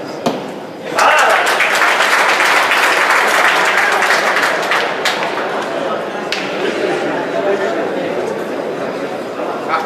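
A large crowd cheers and claps.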